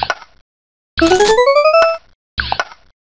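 A rising electronic chime plays as a row of blocks clears.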